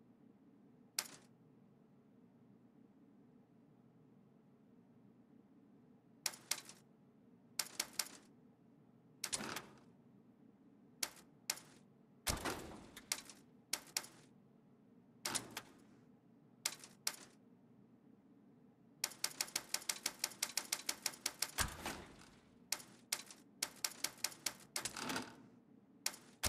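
Short game menu clicks and whooshes sound as selections change, sometimes in quick runs.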